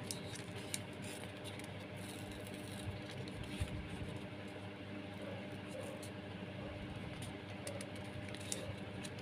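Plastic crackles faintly as fingers press on a thin cup.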